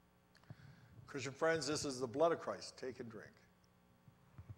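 An elderly man speaks solemnly into a microphone.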